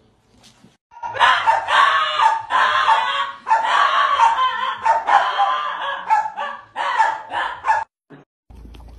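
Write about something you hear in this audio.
A small dog barks and howls in rapid, noisy bursts.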